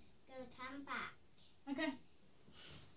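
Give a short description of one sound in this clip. A young girl speaks in a high voice close by.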